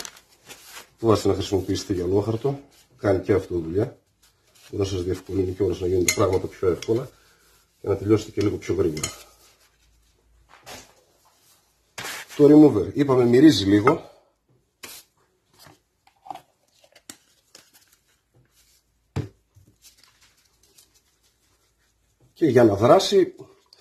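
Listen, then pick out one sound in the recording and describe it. A man talks close by in short bursts, with pauses between.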